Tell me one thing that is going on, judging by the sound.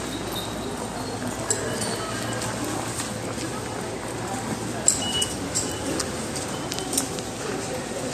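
Ticket gates beep and click.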